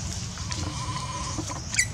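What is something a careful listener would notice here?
Dry leaves rustle as a baby monkey is dragged along the ground.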